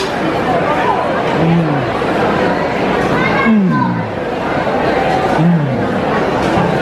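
A crowd chatters in the background of a large, echoing hall.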